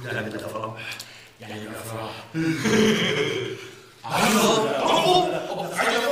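A second man talks and laughs, close by.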